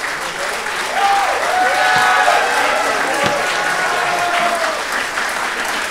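Audience members whistle and cheer loudly.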